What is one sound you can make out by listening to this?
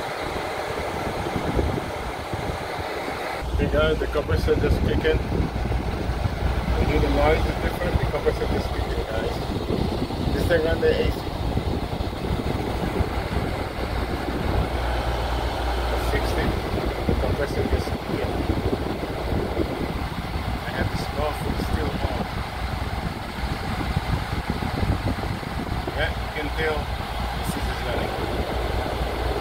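An air conditioner's fan hums and whirs steadily, close by.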